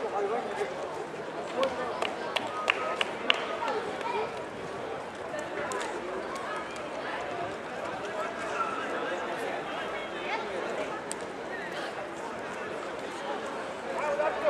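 A crowd of people chatters at a distance, outdoors.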